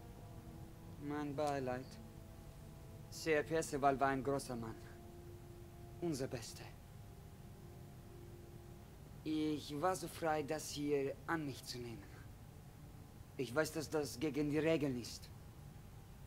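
A young man speaks calmly and quietly.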